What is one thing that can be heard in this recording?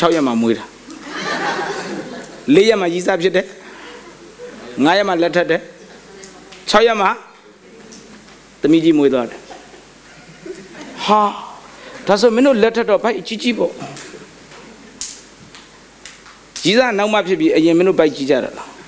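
A man speaks in bursts with pauses, through a microphone in a hall with some echo.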